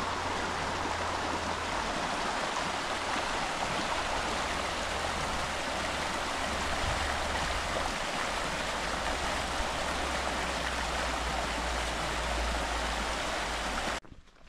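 A shallow river rushes steadily over stones.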